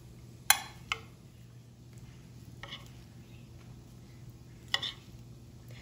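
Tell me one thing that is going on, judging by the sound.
Metal tongs clink against a ceramic bowl.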